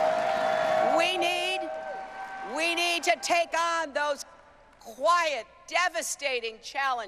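A woman speaks forcefully into a microphone over loudspeakers.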